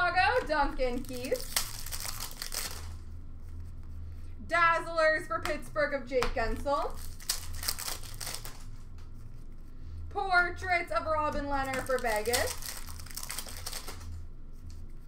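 Plastic wrappers and trading cards rustle as they are handled.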